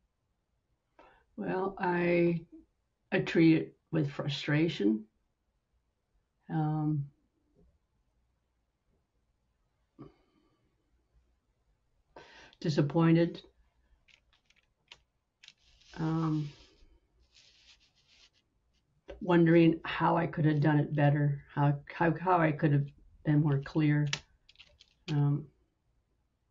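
A woman speaks calmly over an online call, with pauses.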